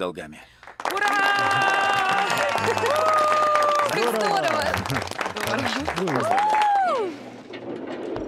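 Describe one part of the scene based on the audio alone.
A group of people clap and cheer.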